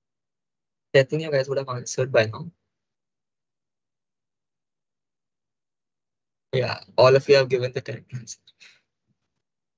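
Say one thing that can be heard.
A young man speaks briefly into a microphone in short bursts.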